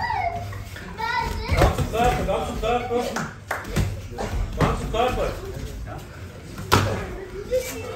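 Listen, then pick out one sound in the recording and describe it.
A shin slaps against a padded arm in a kick.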